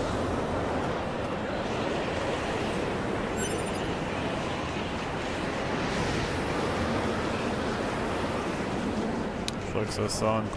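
Wind roars steadily in a sandstorm.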